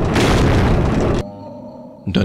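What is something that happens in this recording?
Torch flames crackle and roar.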